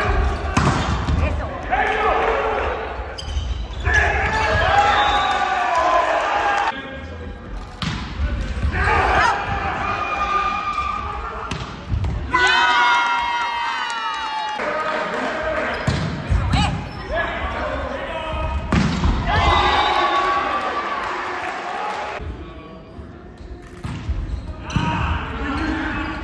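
A volleyball thumps off hands and arms.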